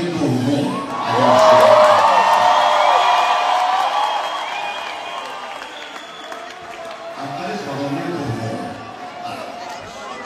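A singer sings into a microphone over loudspeakers.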